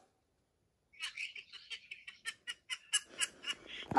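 A smartwatch beeps softly as it is tapped.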